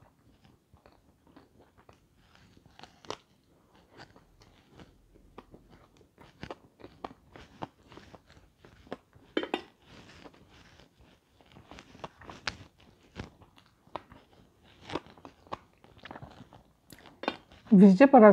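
A young woman chews and crunches food close to a microphone.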